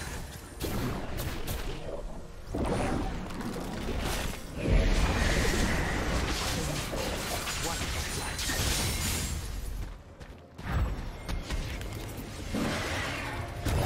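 Video game spells whoosh and crackle in a fight.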